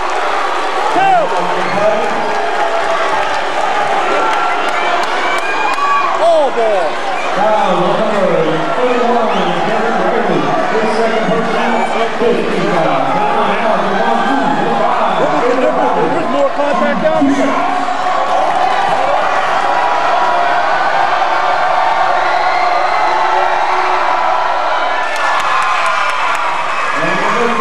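Young men talk and call out to each other in a large echoing hall.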